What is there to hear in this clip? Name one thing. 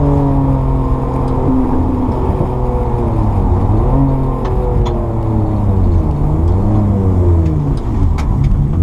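A car engine roars loudly, its pitch rising and falling as it shifts gears.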